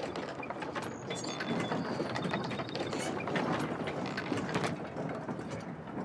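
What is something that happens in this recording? A wooden drawbridge creaks and clatters as it swings down.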